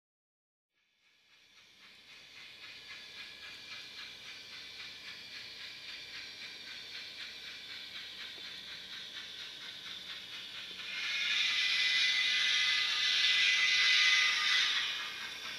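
A model train clatters along the tracks with a steady rhythmic clicking, growing louder as it comes closer.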